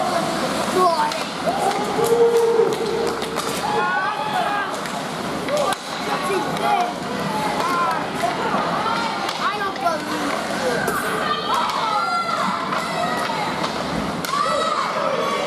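Skates scrape and swish on ice in an echoing rink.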